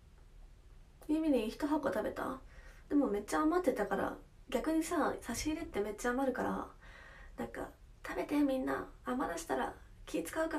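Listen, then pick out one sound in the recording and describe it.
A young woman talks close to a microphone in a chatty way, with animation.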